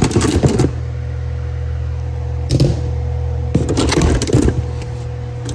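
Metal parts clatter and clink in a box.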